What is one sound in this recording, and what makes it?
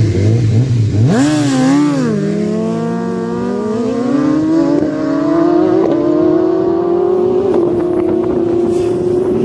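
A motorcycle roars off at full throttle, its engine note rising as it speeds away into the distance.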